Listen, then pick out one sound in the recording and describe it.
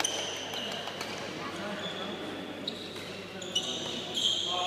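Rackets hit a shuttlecock with sharp pops.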